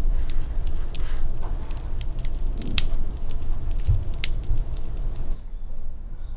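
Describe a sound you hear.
Burning charcoal crackles softly.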